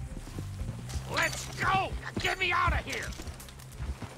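A man calls out urgently.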